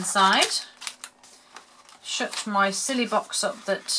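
A plastic snack packet crinkles as it is handled.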